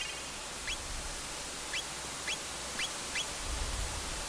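Short rising electronic blips sound as a menu cursor moves.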